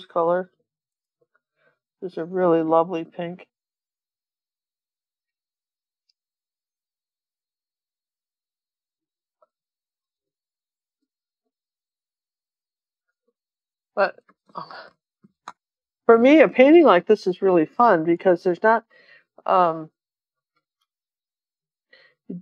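An elderly woman talks calmly and close to a microphone, with pauses.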